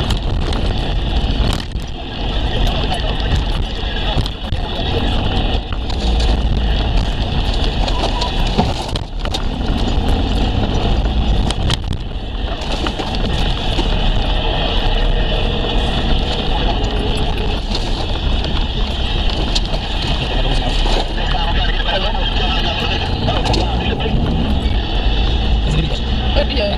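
A vehicle's engine drones, heard from inside the cabin.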